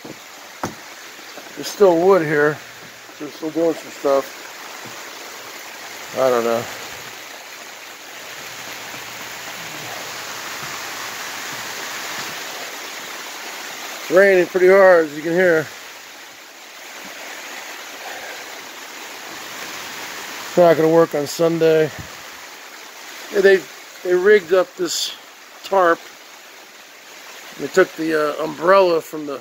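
Hail and rain patter steadily outdoors.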